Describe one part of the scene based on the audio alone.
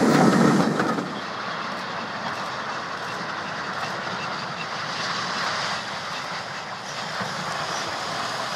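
A steam locomotive chuffs steadily in the distance.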